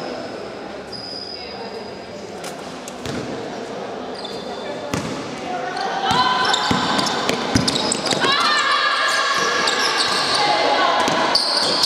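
Spectators murmur in the stands.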